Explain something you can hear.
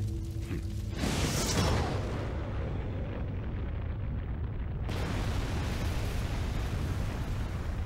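A volcano erupts with a deep, roaring rumble.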